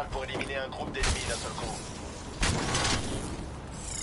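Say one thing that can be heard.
Gunfire bursts out in loud blasts.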